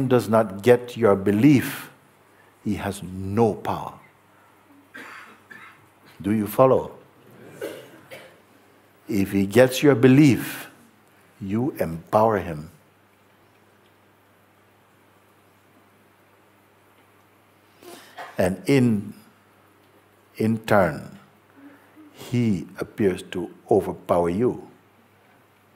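An older man speaks calmly and thoughtfully into a close microphone, with long pauses.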